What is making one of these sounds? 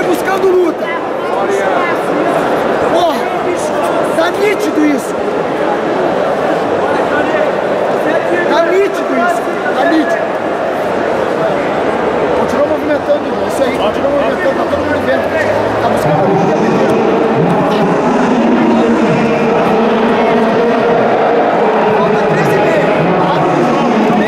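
Spectators shout instructions loudly.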